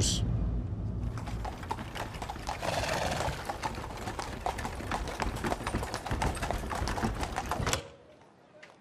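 Carriage wheels and horse hooves clatter on a road.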